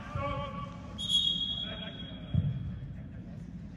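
A referee's whistle blows once, sharp and shrill.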